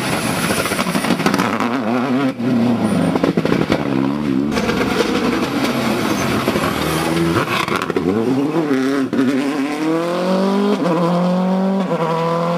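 A rally car engine roars and revs hard, rising and falling in pitch.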